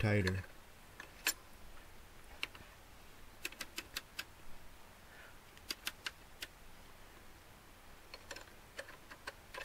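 A metal tool clicks and ticks against a metal rod.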